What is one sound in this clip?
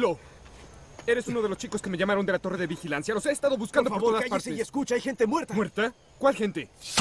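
A middle-aged man speaks firmly and loudly.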